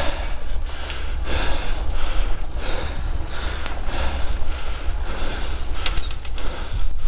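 Wind buffets the microphone outdoors with a low, steady rumble.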